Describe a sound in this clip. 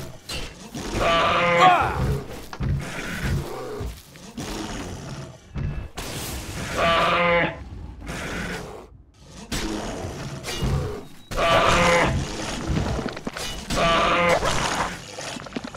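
A bear growls and roars loudly.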